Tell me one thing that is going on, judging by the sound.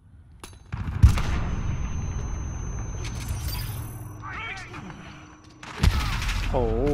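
Gunshots ring out.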